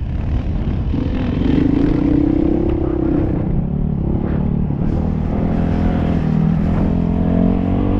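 A dirt bike engine revs loudly up close.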